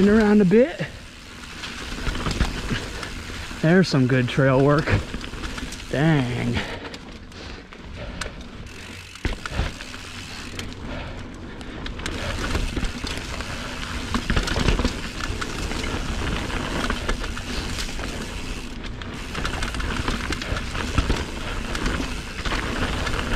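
A bicycle rattles over bumps in the trail.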